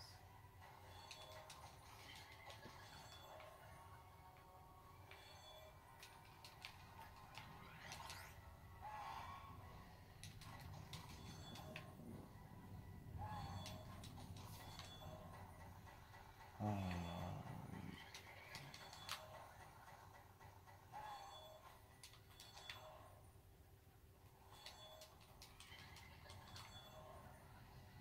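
Game music plays through a television's speakers.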